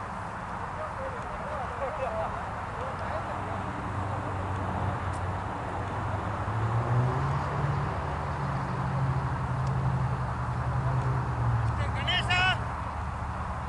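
Men call out faintly across an open field.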